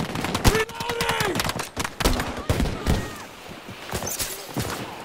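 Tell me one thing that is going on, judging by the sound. Rapid gunfire cracks close by.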